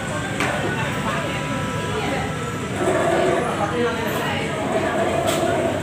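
A crowd of people chatter indoors.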